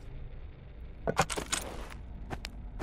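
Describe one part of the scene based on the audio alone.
A wooden box clicks and its lid opens.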